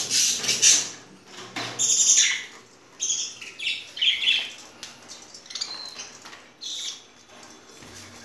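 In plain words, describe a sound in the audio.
Small birds chirp and twitter loudly close by.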